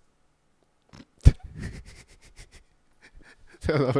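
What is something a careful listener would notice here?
A young man laughs into a microphone.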